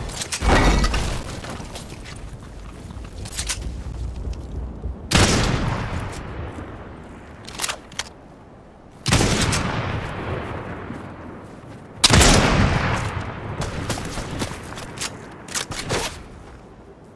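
Loud gunshots boom and echo away.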